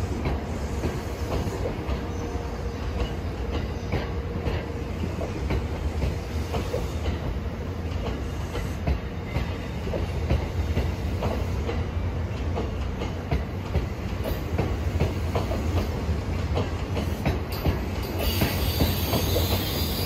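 A passing train rumbles close by, low and steady.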